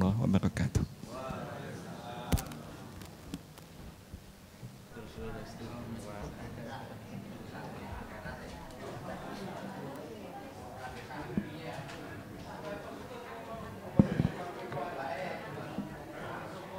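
A crowd of women chatters in a large room.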